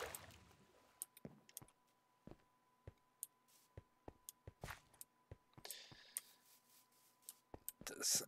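Footsteps tap on hard ground at a walking pace.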